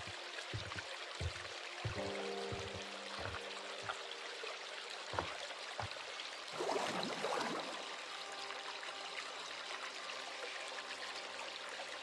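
Water laps gently against a shore.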